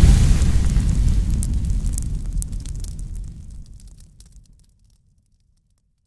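Fire crackles and pops.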